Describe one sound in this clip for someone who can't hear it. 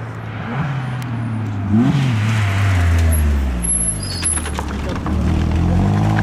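A rally car engine revs hard as the car races past close by.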